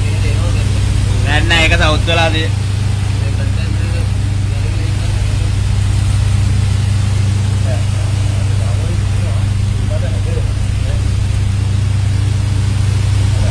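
A powerful water jet sprays and splashes steadily.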